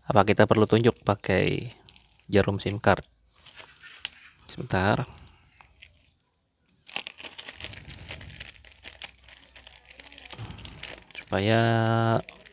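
A phone is handled and turned over with soft taps and rustles.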